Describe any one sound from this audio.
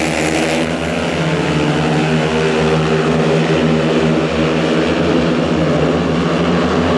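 Several racing motorcycle engines roar loudly and steadily close by.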